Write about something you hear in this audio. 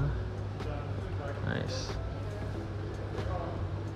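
A plastic jar is lifted off a shelf and set back down.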